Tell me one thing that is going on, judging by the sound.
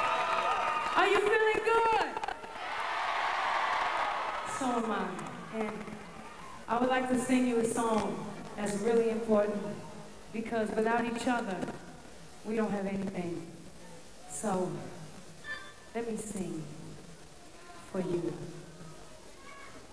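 A woman sings into a microphone over a loudspeaker, in a large echoing hall.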